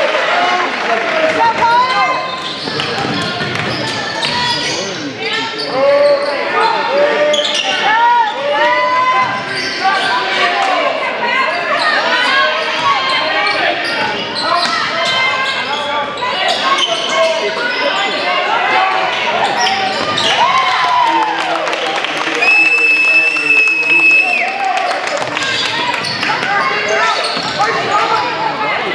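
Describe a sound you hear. A crowd of spectators cheers and chatters in a large echoing gym.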